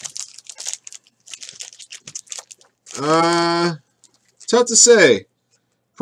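Foil card packs crinkle in hands.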